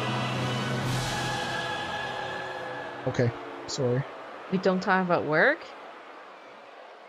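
A large crowd cheers in an arena.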